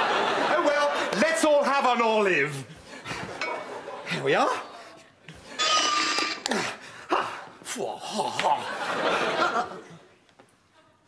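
A middle-aged man shouts with animation close by.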